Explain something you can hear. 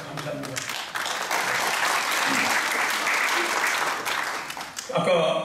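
A large audience claps in an echoing hall.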